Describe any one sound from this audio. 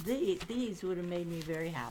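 Paper rustles in a hand.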